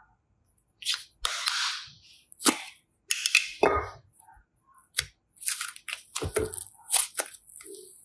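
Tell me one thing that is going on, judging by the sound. A plastic case clicks and snaps open.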